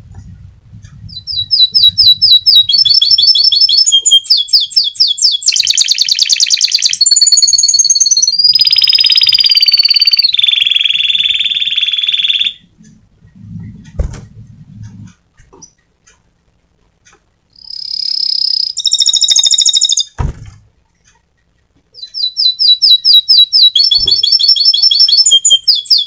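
A canary sings close by in rapid trills, whistles and warbles.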